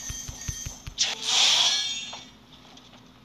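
A magic spell bursts with a sparkling whoosh.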